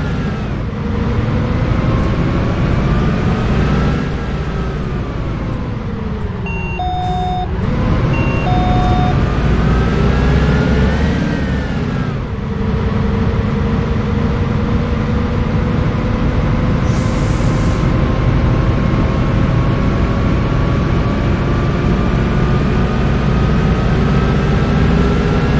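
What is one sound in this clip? A bus engine hums and whines, its pitch rising and falling as it speeds up and slows down.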